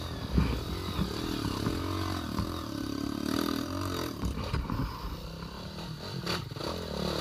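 A dirt bike engine revs up and down nearby.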